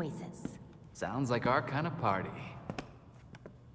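A man answers with animation.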